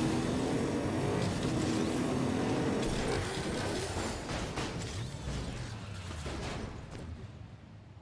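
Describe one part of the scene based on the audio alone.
A car engine roars as a car speeds along a road.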